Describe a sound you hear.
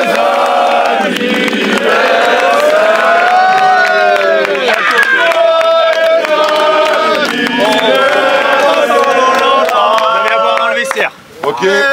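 A crowd of young men sings loudly together outdoors.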